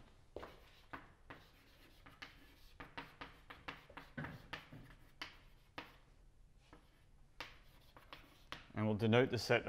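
Chalk taps and scrapes sharply on a board.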